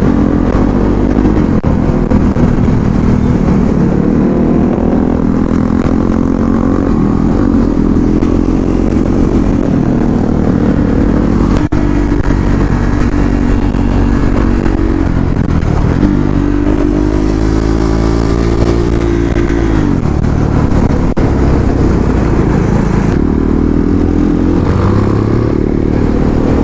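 A motorcycle engine roars up close, rising and falling in pitch as it revs and shifts gears.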